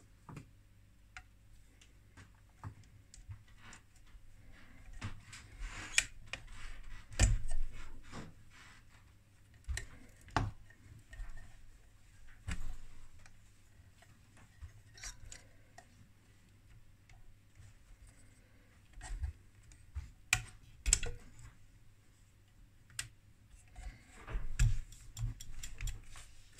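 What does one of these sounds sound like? Wire connectors click and scrape as they are pulled from a circuit board.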